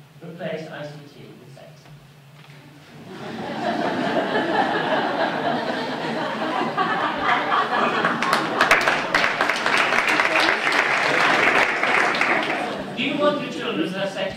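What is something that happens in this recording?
An elderly man speaks calmly through a microphone in a large hall.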